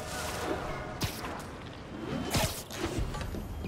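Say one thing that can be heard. Air rushes past in quick whooshes.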